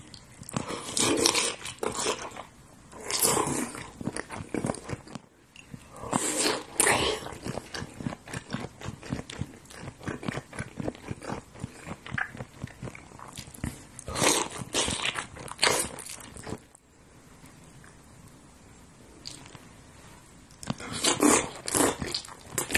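A man slurps and chews food wetly close to a microphone.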